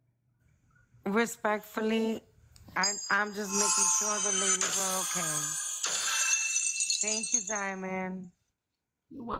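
A young woman sings emotionally, close to a microphone.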